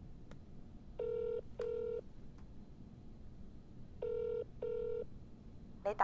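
A phone ringing tone purrs in short repeated pairs.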